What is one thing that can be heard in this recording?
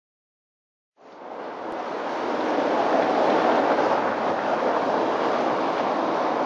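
A car rolls slowly over cobblestones, its tyres rumbling.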